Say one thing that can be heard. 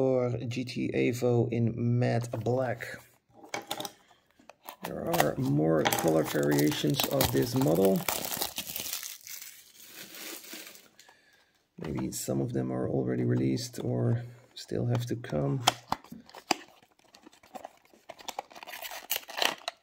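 A small cardboard box rustles and scrapes as hands turn it over.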